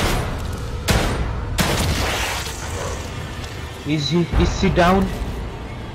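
Pistol shots ring out.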